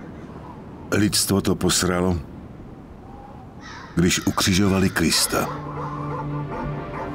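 Wind gusts through bare trees, blowing leaves about.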